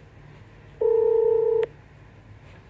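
A phone call tone sounds briefly.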